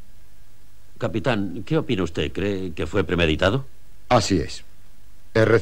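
A second man speaks seriously and close by.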